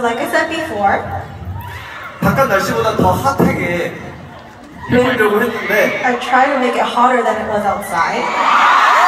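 A young man talks into a microphone over loudspeakers in a large echoing hall.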